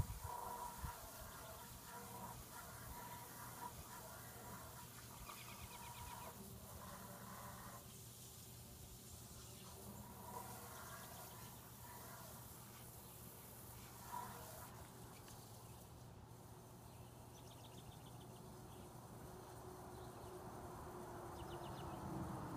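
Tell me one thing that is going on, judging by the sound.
A lawn mower engine drones steadily in the distance.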